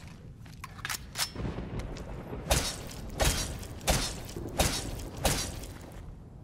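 Heavy blows strike a creature in quick succession.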